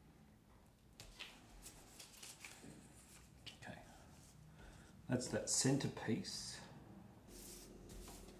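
Paper rustles and slides across a table.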